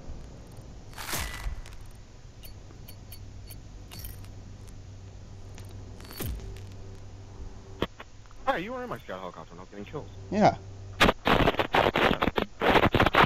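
Short electronic ticks and chimes sound as points tally up.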